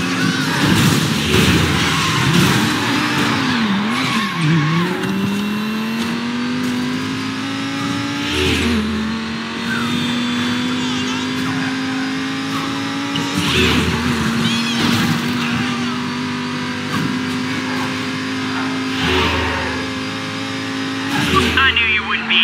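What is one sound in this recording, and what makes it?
A V12 sports car engine accelerates hard, shifting up through the gears.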